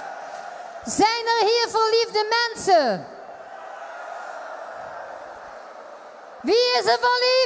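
A woman sings loudly into a microphone over a loudspeaker.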